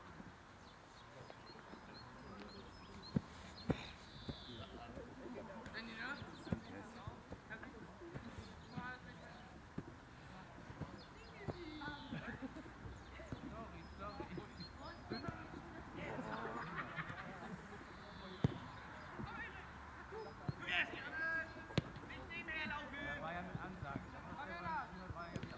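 Men shout and call to each other across an open field outdoors.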